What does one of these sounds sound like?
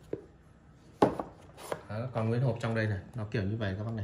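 A box lid is lifted open.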